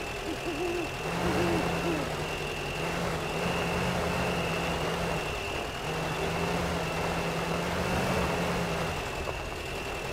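A truck engine rumbles and revs.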